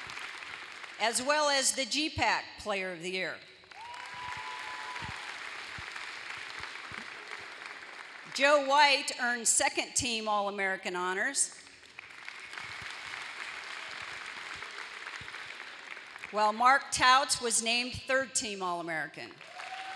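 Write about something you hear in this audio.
A woman announces through a loudspeaker in a large echoing hall.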